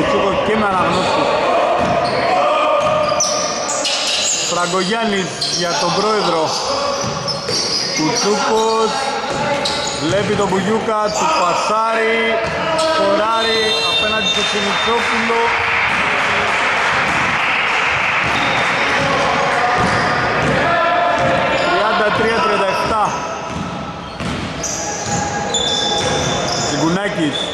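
Men shout to each other across a large echoing hall.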